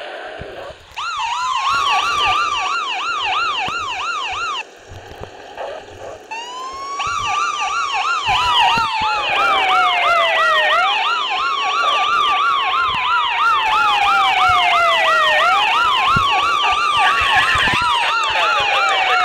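A police siren wails rapidly and loudly.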